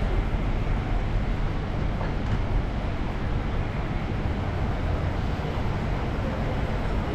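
City traffic rumbles steadily along a street outdoors.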